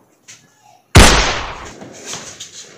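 A gunshot bangs loudly.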